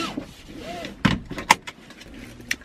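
A seatbelt buckle clicks.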